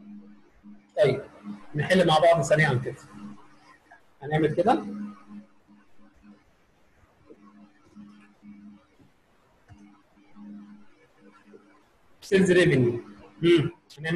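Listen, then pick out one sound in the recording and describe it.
A man speaks calmly through an online call, in short bursts.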